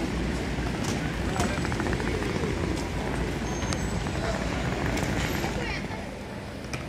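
Crowd chatter murmurs on a busy street outdoors.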